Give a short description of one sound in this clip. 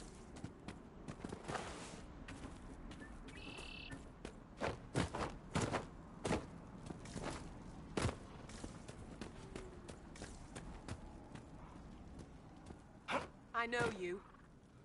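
Footsteps thud quickly on grass and stone.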